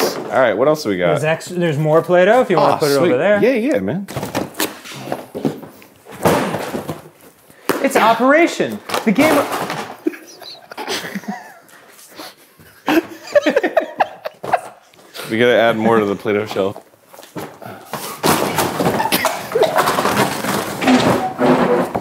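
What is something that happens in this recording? Cardboard boxes rustle and thud as toys are rummaged through.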